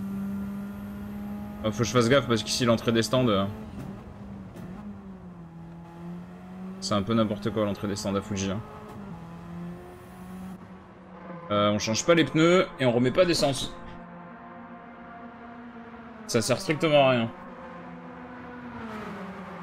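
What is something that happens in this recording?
A race car engine hums steadily, shifting pitch as it speeds and slows.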